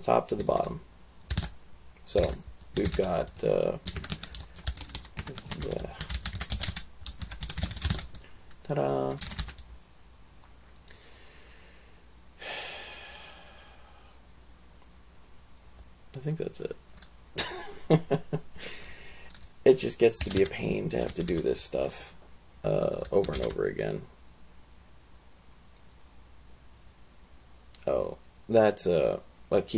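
Keys clack on a computer keyboard.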